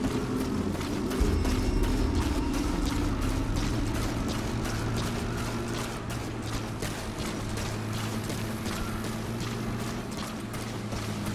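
Footsteps crunch quickly over dirt and gravel.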